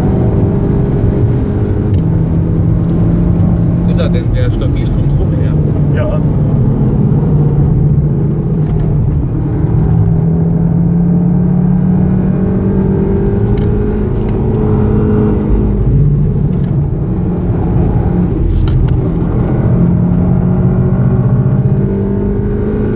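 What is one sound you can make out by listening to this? A car engine roars steadily from inside the cabin, its pitch rising and falling with speed.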